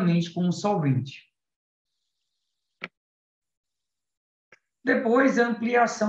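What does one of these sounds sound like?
A man speaks calmly through an online call microphone, with pauses.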